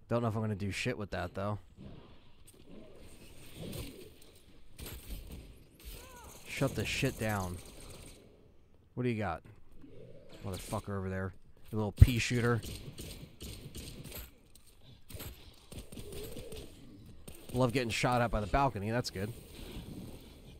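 A young man talks with animation into a microphone, in bursts.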